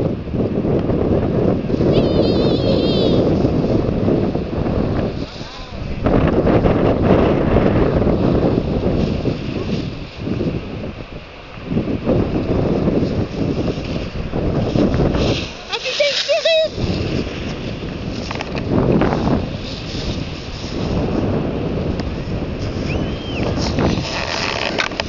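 Skis scrape and hiss over packed snow close by.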